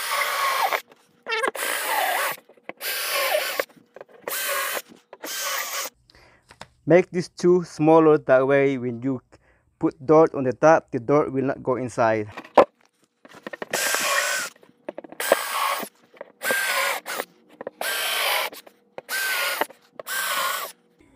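A power drill whirs in short bursts.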